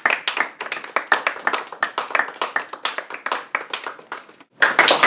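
A small group of people clap their hands in a room.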